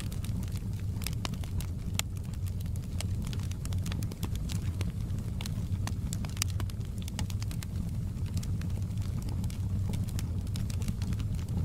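Flames roar with a low, steady rumble.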